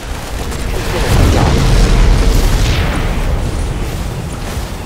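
Gunfire and explosions rumble in a battle.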